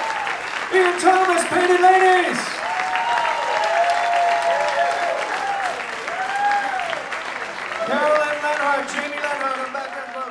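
A band plays live music.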